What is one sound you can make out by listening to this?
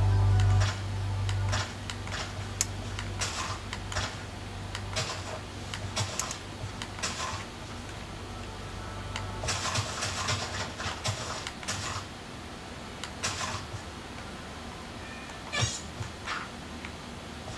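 Blocks crunch and thud as they are broken in a video game.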